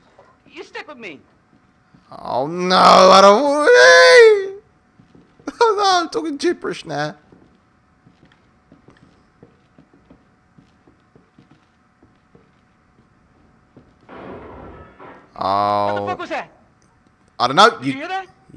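A young man talks and laughs with animation into a close microphone.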